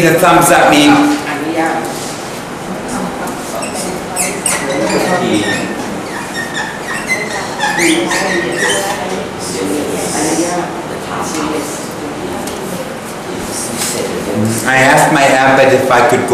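An elderly man speaks clearly into a microphone, like a teacher explaining.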